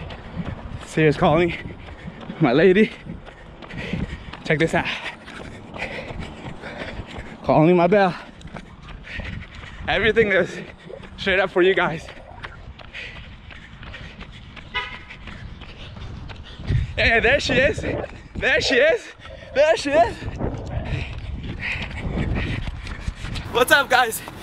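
A young man talks with animation close to a microphone, outdoors.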